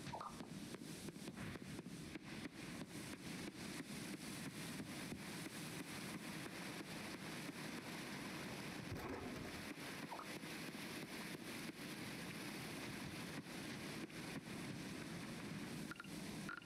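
Quick footsteps patter on a dirt path.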